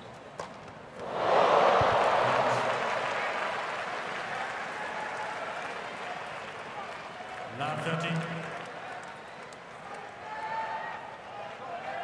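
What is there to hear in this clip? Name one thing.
A large crowd cheers and applauds loudly, then slowly dies down.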